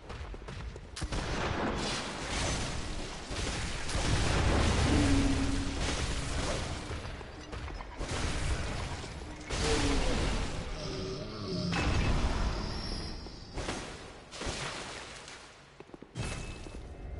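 Heavy weapon blows thud and clash in a fight.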